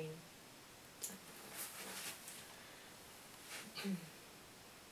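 An acoustic guitar is strummed softly.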